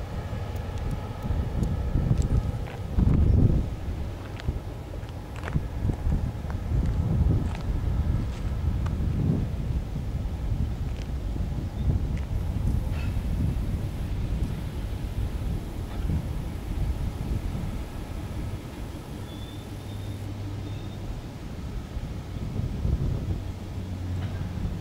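Freight car wheels clack and squeal over rail joints.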